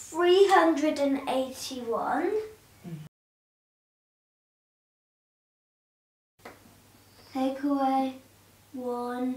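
A young boy speaks clearly and calmly, close to the microphone.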